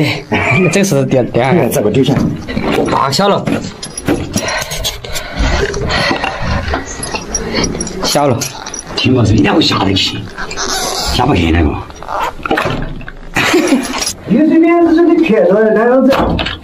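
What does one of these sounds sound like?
Men talk with animation nearby, their voices echoing in a cramped space.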